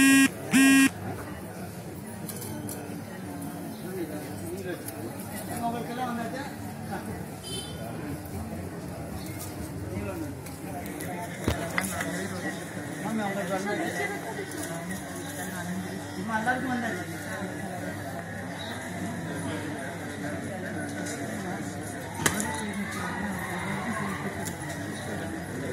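A group of men and women talk in a murmur outdoors.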